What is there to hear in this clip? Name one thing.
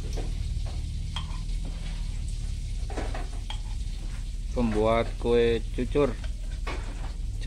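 A ladle clinks against a metal pot.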